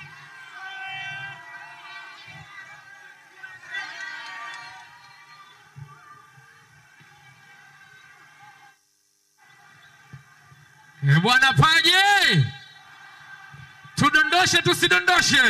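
A young woman sings loudly through loudspeakers.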